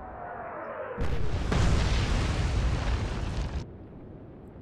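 Shells crash into the sea with a loud roaring splash.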